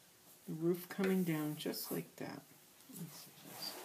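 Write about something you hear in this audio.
Paper rustles as it is moved.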